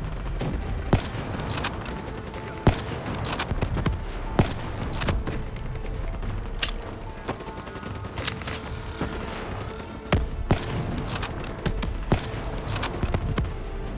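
A rifle fires sharp single shots with a loud echoing crack.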